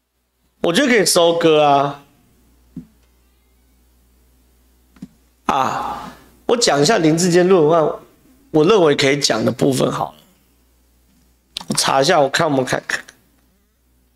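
A man speaks with animation into a close microphone, in short bursts with pauses.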